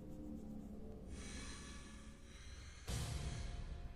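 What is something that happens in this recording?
A lighter flicks and its flame hisses.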